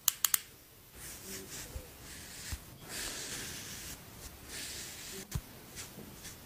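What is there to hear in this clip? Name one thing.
A felt pen scratches softly across skin close to a microphone.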